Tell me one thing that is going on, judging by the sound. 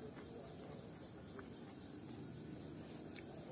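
A young woman chews food close by with soft mouth sounds.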